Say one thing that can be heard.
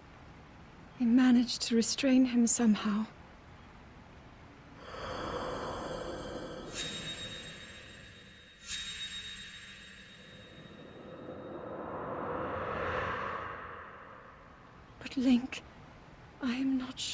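A young woman speaks softly and sadly.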